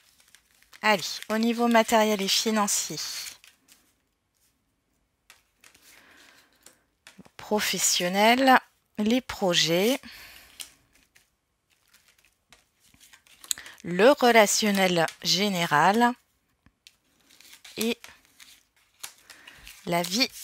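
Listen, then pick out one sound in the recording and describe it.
Playing cards are laid down softly onto a table, one after another.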